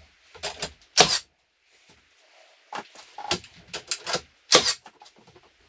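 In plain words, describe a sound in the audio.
A nail gun fires sharply into wood.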